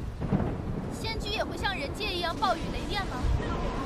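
A young woman asks a question in a worried voice.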